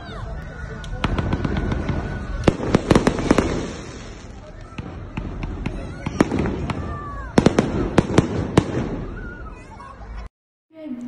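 Fireworks bang and crackle overhead outdoors.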